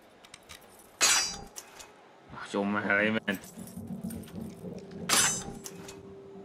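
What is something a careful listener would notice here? Metal lock pins click and clink sharply.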